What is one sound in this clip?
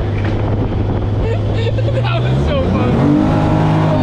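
A man laughs and talks with animation close by.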